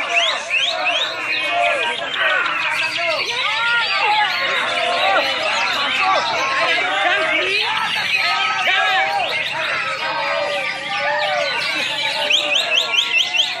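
Many caged birds chirp and whistle loudly all at once.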